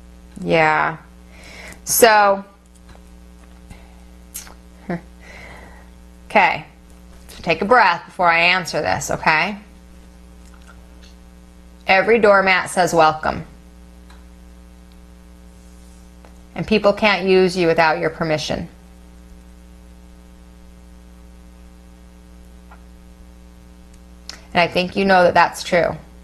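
A woman speaks calmly and closely in short bursts with pauses.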